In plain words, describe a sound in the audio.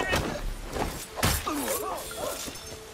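A brief scuffle ends with a heavy thump.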